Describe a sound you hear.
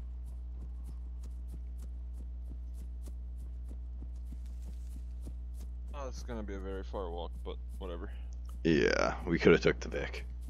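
Footsteps rustle through tall grass at a steady walking pace.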